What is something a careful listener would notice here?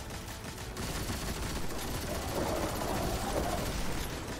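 A gun fires rapid bursts with sharp cracks.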